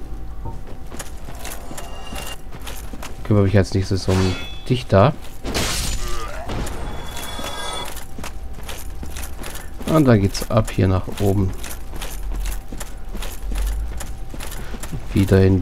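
Armoured footsteps clank steadily on the ground.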